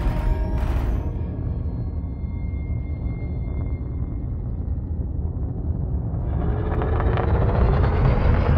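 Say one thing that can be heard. A spaceship engine rumbles deeply and steadily, swelling louder and rising toward the end.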